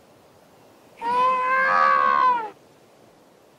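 A monster gives a loud, wavering roar.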